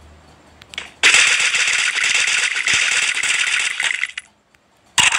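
A gun fires in a rapid, sustained burst.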